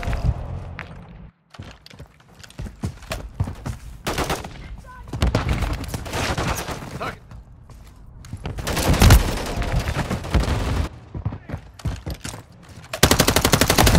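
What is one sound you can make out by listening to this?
Rifle gunfire rattles in quick bursts.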